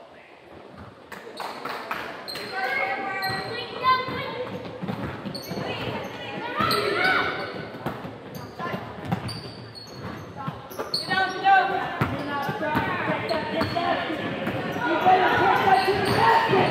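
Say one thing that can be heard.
Children shout and call out across the gym.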